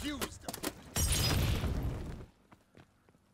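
A loud explosion booms and crackles.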